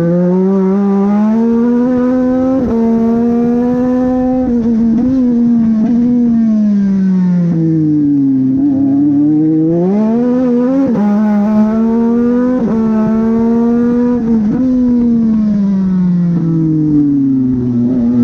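A race car engine roars up close, rising and falling in pitch as it shifts gears.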